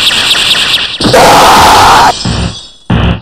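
A powerful energy blast roars.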